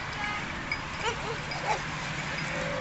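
Dogs yelp and bark briefly nearby, outdoors.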